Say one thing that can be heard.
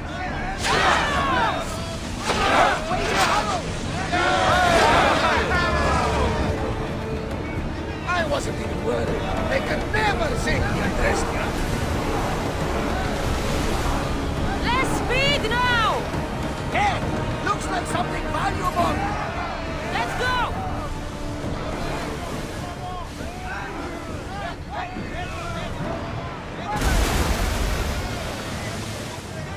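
Waves wash against a wooden ship's hull.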